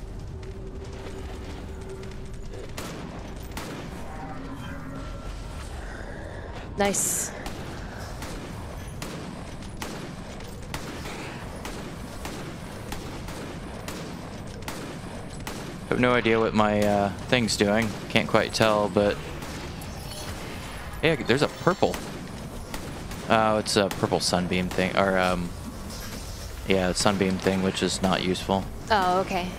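Spell effects crackle and burst during a fight in a game.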